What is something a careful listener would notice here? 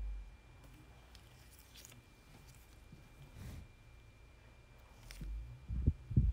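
A metal lid scrapes and clicks against a small jar.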